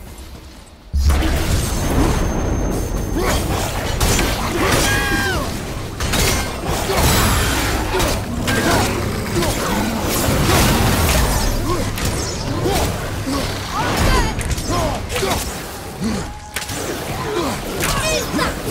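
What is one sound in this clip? Heavy blows thud and weapons clash in a fierce fight.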